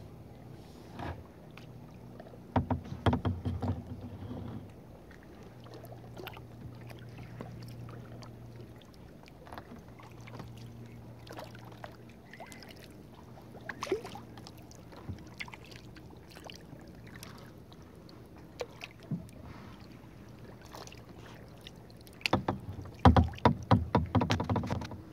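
A paddle dips and splashes in calm water close by.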